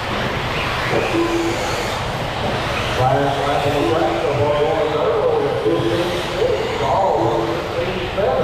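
Small electric racing cars whine as they speed around a dirt track.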